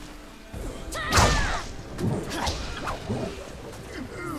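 Swords clash and slash in quick, sharp strikes.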